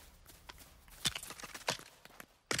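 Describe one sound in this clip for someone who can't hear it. Toy bricks clatter as a structure breaks apart.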